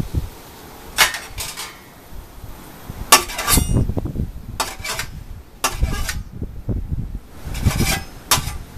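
Metal pans clank and scrape together.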